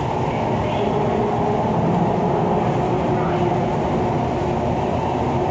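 An electric train runs along the track, heard from inside a carriage.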